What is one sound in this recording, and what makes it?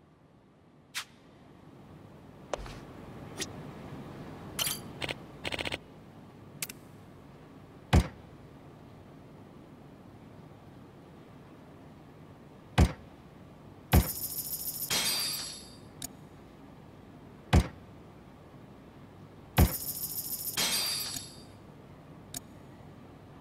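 Short electronic menu clicks sound now and then.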